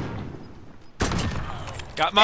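A rifle fires a single loud, booming shot.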